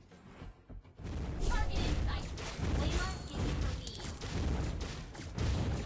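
Game sound effects of spells and blows clash in a fight.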